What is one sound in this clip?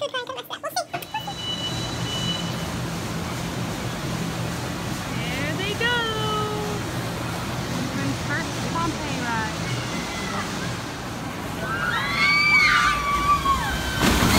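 A roller coaster train rumbles along its track.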